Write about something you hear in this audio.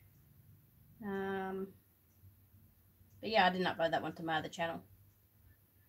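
A woman speaks briefly and calmly nearby.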